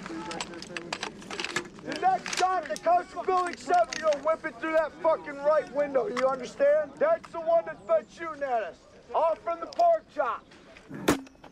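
A man shouts urgently nearby.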